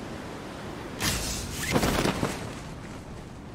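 A parachute snaps open with a sudden loud flapping whoosh.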